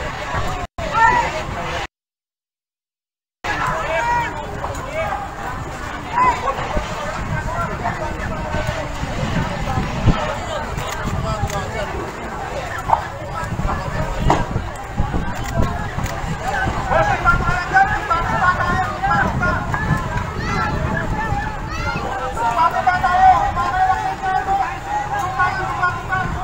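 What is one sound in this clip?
A crowd of men shout and call out excitedly nearby.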